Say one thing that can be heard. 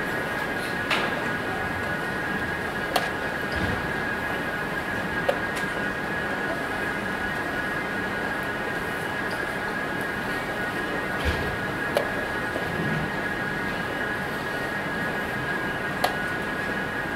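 Chess pieces and clock buttons click sharply now and then on a wooden table.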